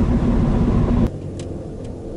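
Tyres rumble loudly on the road.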